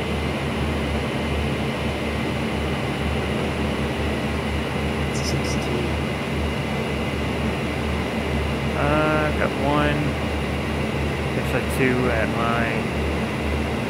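A propeller plane's engine drones steadily and loudly.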